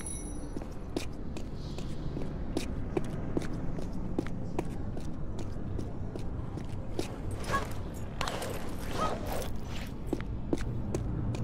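Footsteps patter quickly on stone in an echoing space.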